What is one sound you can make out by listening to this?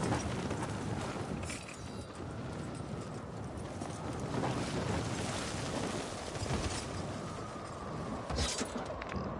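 Wind rushes steadily during a parachute descent.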